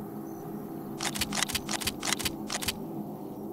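Metal gear clicks and clatters sharply several times.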